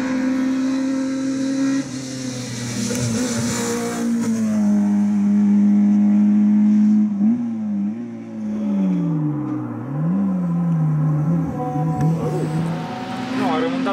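A rally car engine roars loudly, revving up and down through gear changes.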